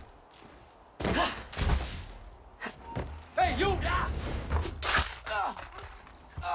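Blades clash and bodies strike in a fight.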